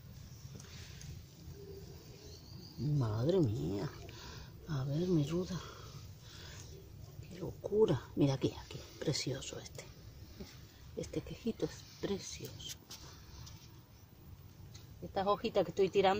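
Leafy plants rustle softly as hands brush through them.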